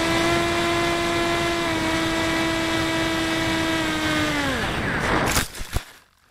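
Wind rushes past a model plane.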